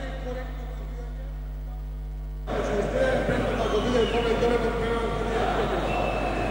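A middle-aged man speaks with animation through a microphone and loudspeakers in a large echoing hall.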